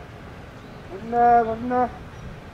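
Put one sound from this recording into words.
A young man shouts loudly nearby.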